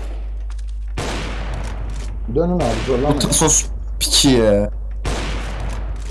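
A sniper rifle fires loud, sharp shots a few seconds apart.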